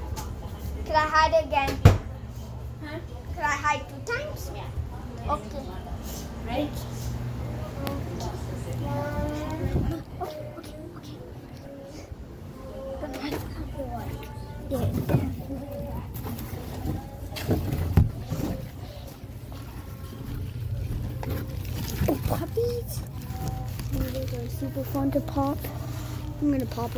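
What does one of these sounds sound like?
A young boy talks and squeals close to the microphone.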